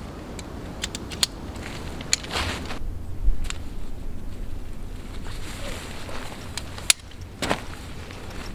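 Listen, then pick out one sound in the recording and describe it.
Tent poles click and clatter.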